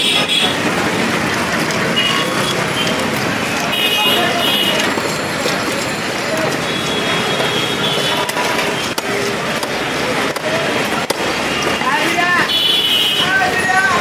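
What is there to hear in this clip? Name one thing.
A woman scrapes the scales off a fish against a blade.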